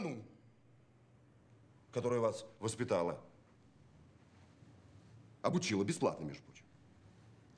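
A middle-aged man speaks nearby.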